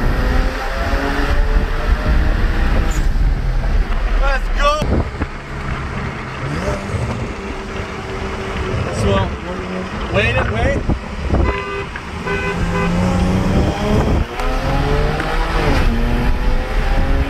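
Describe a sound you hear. A car engine revs hard as the car accelerates, rising in pitch and dropping at each gear change.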